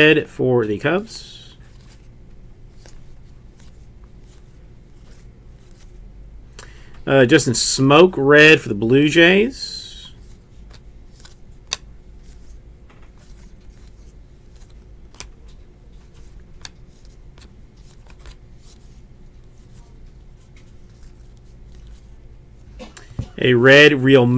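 Trading cards slide and flick softly against each other.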